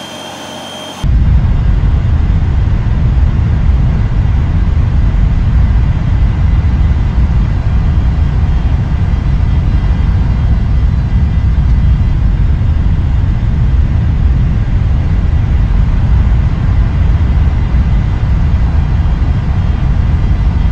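Jet engines rumble low and steady, heard from inside an aircraft.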